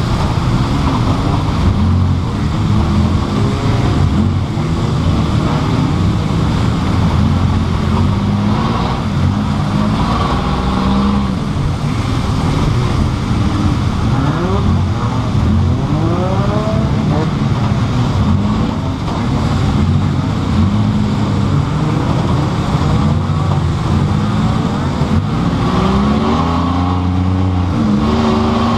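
The car's body rattles and bangs over rough ground.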